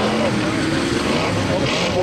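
Combine harvester engines roar as the machines race over a dirt track.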